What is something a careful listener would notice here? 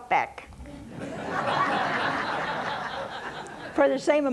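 An elderly man laughs heartily.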